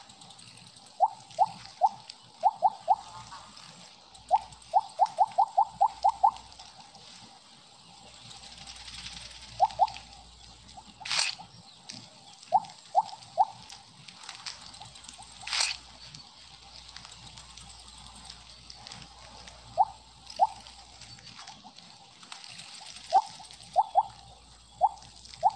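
Short, high-pitched blips sound again and again as a snake in a video game eats glowing pellets.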